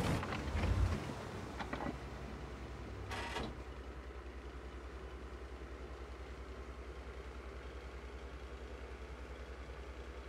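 A tank engine idles with a low steady hum.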